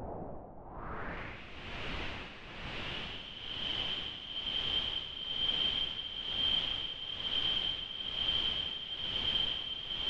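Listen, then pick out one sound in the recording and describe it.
Filtered electronic noise swells and fades in a steady slow pulse.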